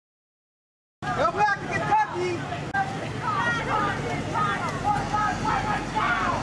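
A crowd of people shouts and chants outdoors.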